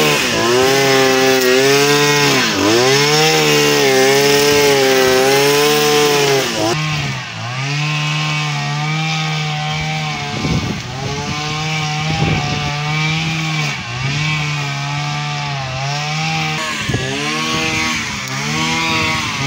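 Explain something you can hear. A string trimmer engine whines loudly close by, revving up and down.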